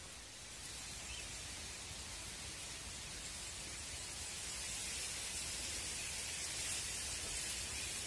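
Wind rustles through reeds and grass outdoors.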